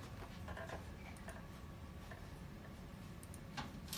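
A computer mouse clicks softly.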